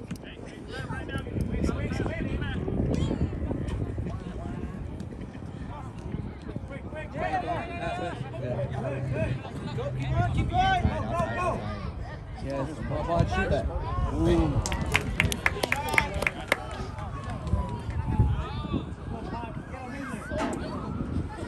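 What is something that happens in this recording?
Young men and spectators shout and call out at a distance across an open field.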